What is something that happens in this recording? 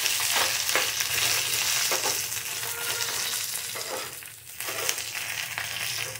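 A metal spoon scrapes and clinks against a pan while stirring.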